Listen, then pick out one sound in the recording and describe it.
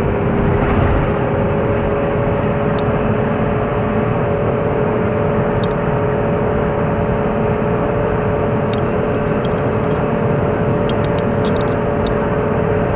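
A vehicle engine hums steadily from inside while driving.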